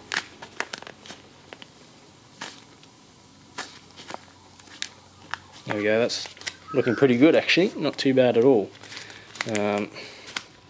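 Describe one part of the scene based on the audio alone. Plastic sheeting crinkles and rustles as it is handled.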